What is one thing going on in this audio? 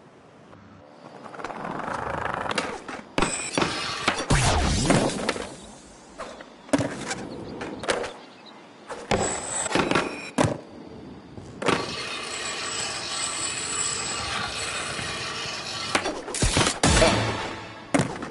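Skateboard wheels roll over concrete.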